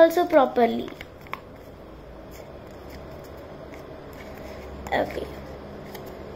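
A young girl speaks briefly and softly, close by.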